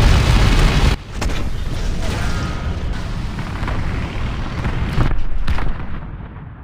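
A heavy tank engine rumbles low.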